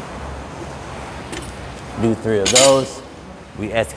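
A loaded barbell drops onto the floor with a thud.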